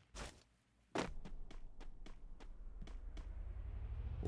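Footsteps thud quickly on grass.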